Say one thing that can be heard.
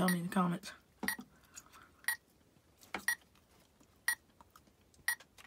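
A small electronic device beeps once a second.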